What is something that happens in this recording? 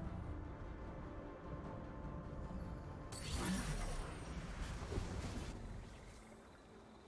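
Battle sound effects clash and burst.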